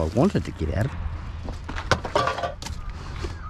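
Glass and plastic bottles clink together.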